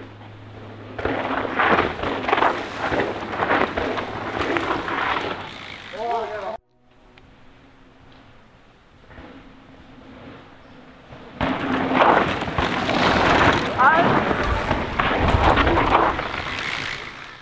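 Mountain bike tyres crunch and skid over a dirt trail as riders speed past close by.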